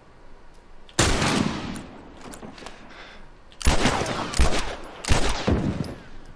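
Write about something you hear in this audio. A gun fires loudly, with each shot echoing outdoors.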